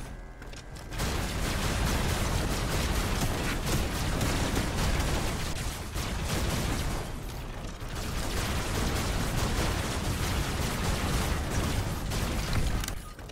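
A beam weapon fires with a loud, steady roar.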